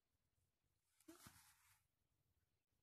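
Fabric rustles briefly as a cat shifts on a blanket.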